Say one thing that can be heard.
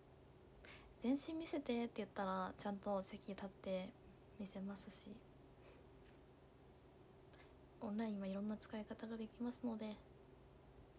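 A young woman talks calmly and close by, in two short bursts with pauses between.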